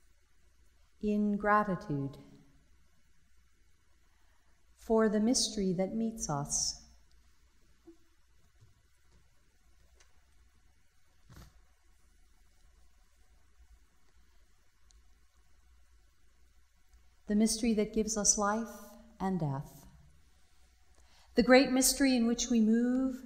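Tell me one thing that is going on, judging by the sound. A woman speaks calmly in short phrases, with pauses between them.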